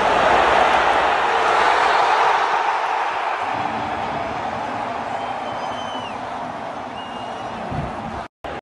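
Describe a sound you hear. A large stadium crowd cheers and roars outdoors.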